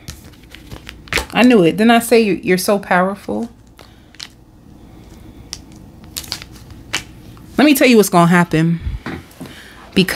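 Playing cards slap softly onto a table.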